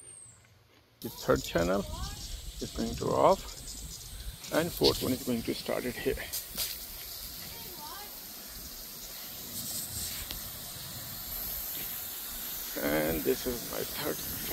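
Lawn sprinklers hiss as they spray water.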